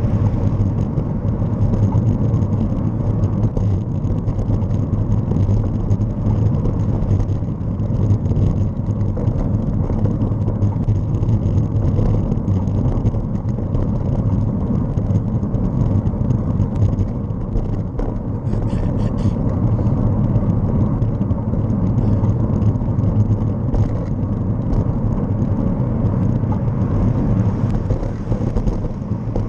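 Wind rumbles steadily against the microphone while moving along a road.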